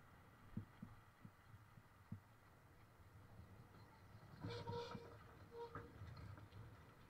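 A tram rolls past close by.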